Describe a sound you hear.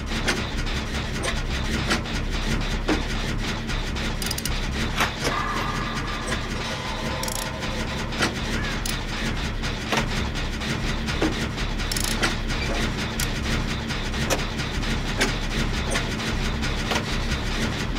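A machine rattles and clanks steadily with sharp metallic clicks.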